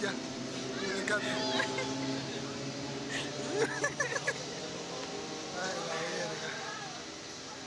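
A young woman laughs and shrieks close by.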